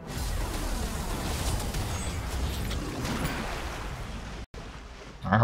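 Magic spell effects crackle and whoosh in a video game.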